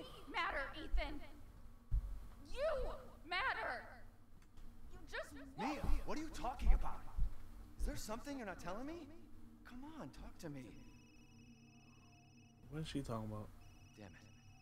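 A young woman speaks pleadingly and with emotion, close by.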